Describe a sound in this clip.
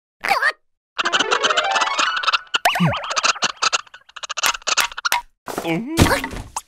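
Wooden limbs clack and knock quickly.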